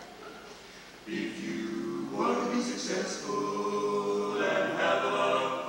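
A small group of young singers sings together in a large echoing hall.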